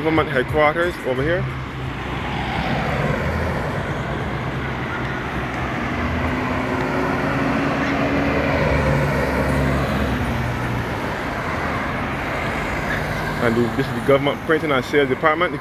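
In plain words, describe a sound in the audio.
Cars and vans drive past one after another on a nearby road.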